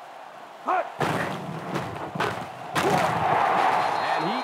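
Football players collide with heavy padded thuds.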